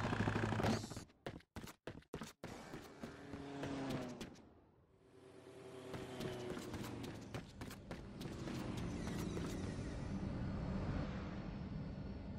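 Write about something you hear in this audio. Footsteps patter quickly on a hard road.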